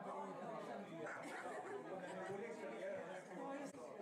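An elderly man laughs close by.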